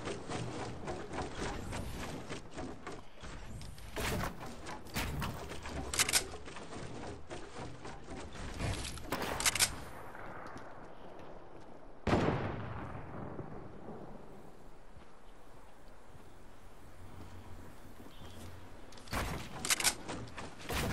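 Wooden planks clack sharply as building pieces snap into place.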